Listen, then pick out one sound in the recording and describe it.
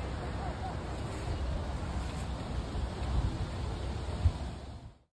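Footsteps crunch and rustle through dry fallen leaves.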